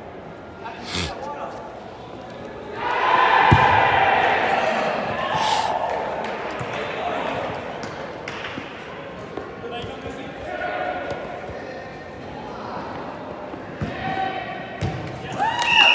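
A ball thuds when kicked.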